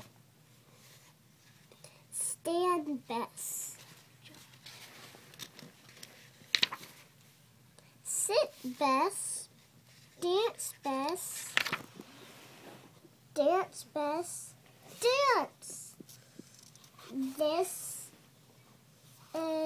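Paper pages rustle softly as a book's pages are turned.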